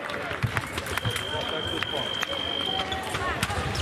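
An electronic scoring buzzer sounds a steady high tone.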